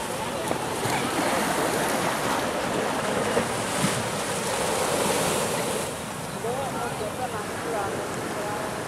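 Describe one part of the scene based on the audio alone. A group of men call out to each other outdoors.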